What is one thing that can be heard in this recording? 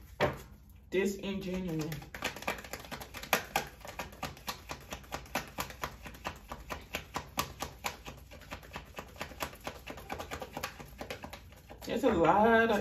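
Playing cards are shuffled with quick, soft taps and flicks.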